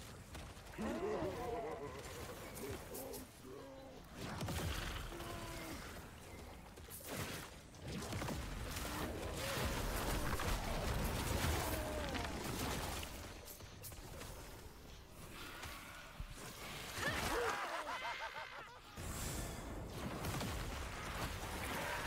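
Game spells and hits crackle and boom.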